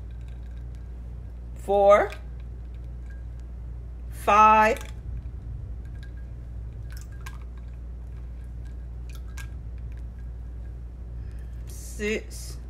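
Powder pours softly from a cup into a bowl.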